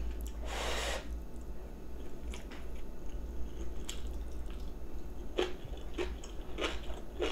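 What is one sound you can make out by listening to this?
A woman chews food with wet smacking sounds close by.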